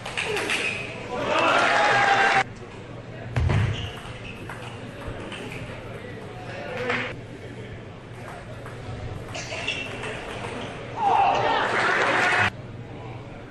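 An audience applauds loudly in an echoing hall.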